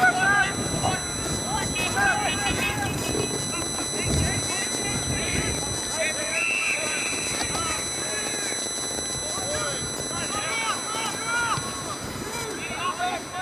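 Men shout to each other in the distance across an open field.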